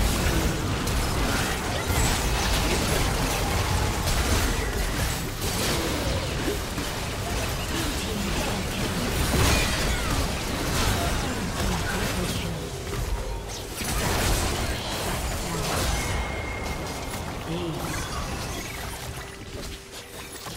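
Game spell blasts and impacts crackle and boom in a fast battle.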